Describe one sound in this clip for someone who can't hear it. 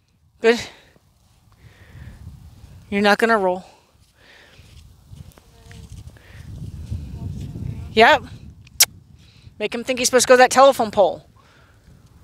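A young woman speaks calmly nearby, outdoors.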